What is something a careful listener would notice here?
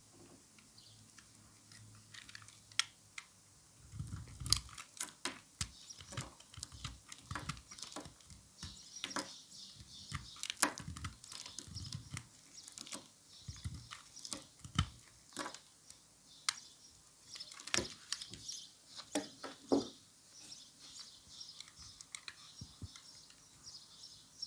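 A blade shaves and scrapes soap, with crisp cutting sounds up close.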